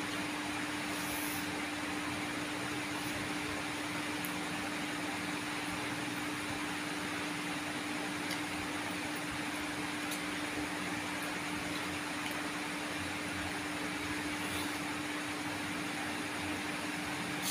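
A woman slurps noodles noisily.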